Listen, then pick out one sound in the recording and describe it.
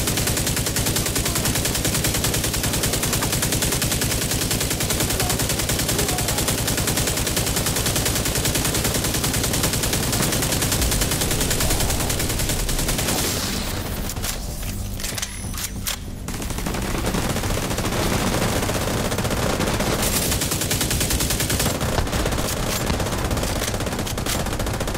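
Automatic rifles fire in rapid, continuous bursts.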